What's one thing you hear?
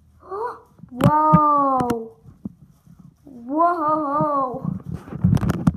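A young boy whines in a high voice.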